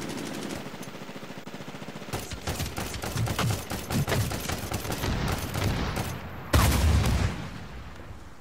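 Rapid gunfire bursts loudly and close.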